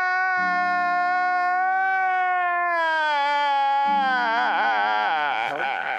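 A man wails loudly in a long, drawn-out cry that wavers and breaks toward the end.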